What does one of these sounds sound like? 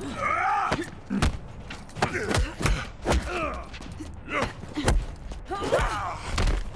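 Blows land with sharp thuds during a fight.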